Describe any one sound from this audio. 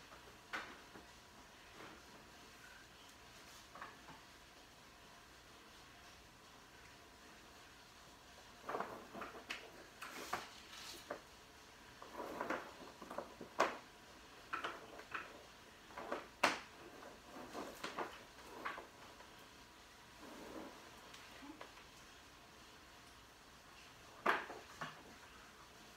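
Small equipment knocks and clicks as a person handles gear on a table.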